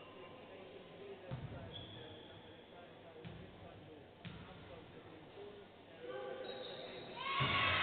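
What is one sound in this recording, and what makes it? A basketball bounces on a hard court floor.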